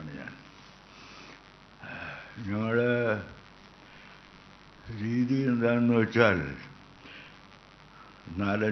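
An elderly man speaks slowly into a microphone through loudspeakers, with pauses.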